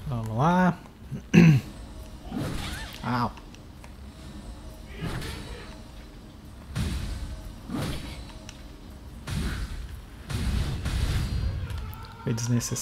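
A heavy blade swings and strikes with whooshes and thuds.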